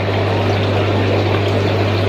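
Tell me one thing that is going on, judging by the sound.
Water trickles and splashes into a tank.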